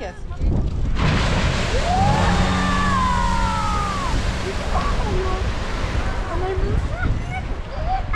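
A geyser bursts with a sudden loud rushing hiss that slowly fades.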